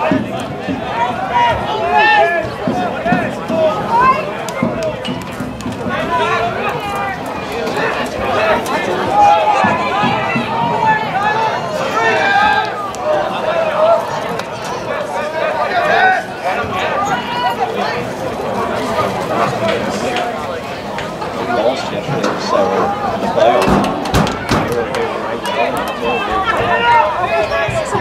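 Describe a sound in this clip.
A crowd of young men shouts and cheers at a distance outdoors.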